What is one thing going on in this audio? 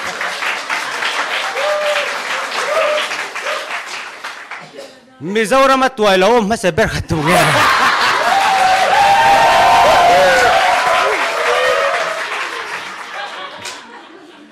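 An audience laughs loudly in a large hall.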